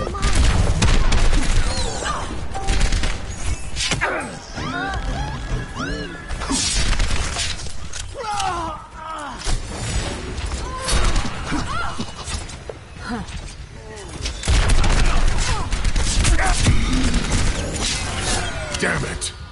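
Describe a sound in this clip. A rifle fires rapid bursts of shots.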